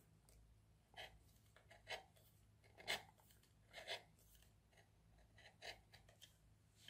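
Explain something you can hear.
A wooden stick taps against a plastic disc.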